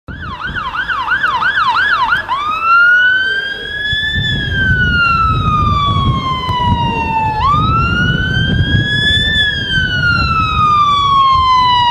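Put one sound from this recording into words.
A heavy truck engine rumbles nearby.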